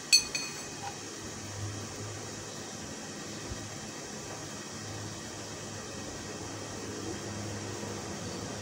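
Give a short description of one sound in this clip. A metal spoon taps and scrapes softly against a plastic bowl.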